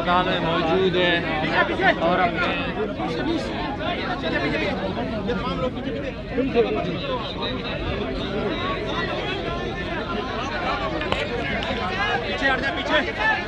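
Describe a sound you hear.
A large crowd of men shouts and talks at once, close by.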